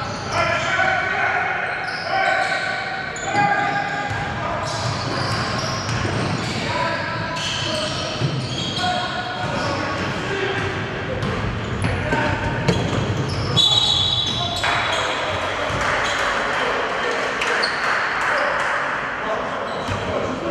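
Sneakers squeak on a wooden floor in an echoing hall.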